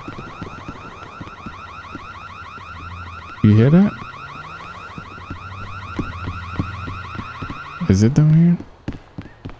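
Heavy boots run on pavement.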